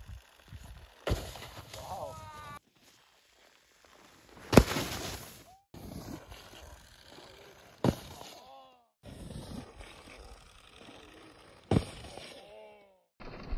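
A snowboard scrapes and thuds on packed snow.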